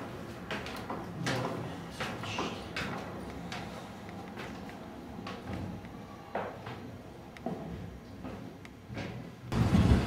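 Footsteps thud and creak on wooden stairs.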